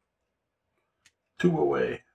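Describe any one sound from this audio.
A small game piece clicks down on a table.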